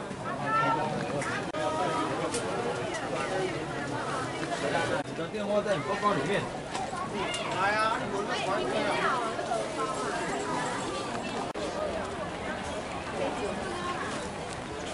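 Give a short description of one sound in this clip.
A crowd of men and women chatters loudly nearby.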